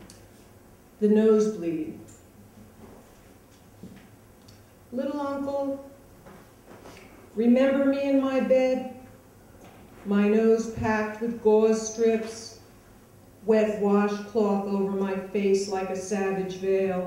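A woman reads aloud slowly and deliberately into a microphone, in short phrases with pauses between them.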